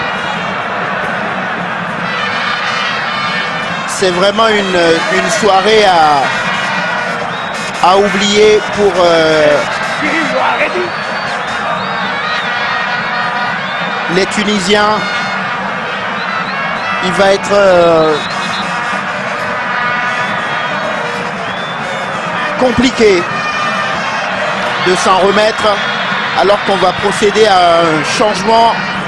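A large stadium crowd roars and chants steadily outdoors.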